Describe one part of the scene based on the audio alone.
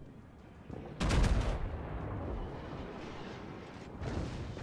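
Heavy naval guns fire with deep, rumbling booms.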